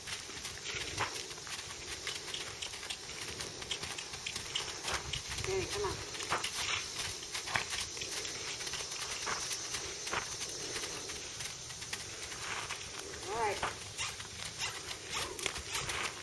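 Hooves thud softly on sandy ground as horses walk.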